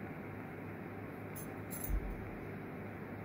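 A small metal tool scrapes and taps against a mould.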